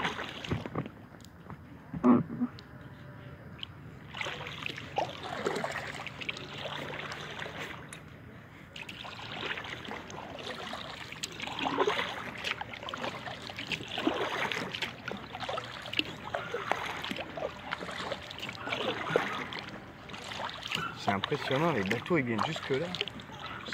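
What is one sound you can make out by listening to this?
Water laps softly against the hull of a kayak.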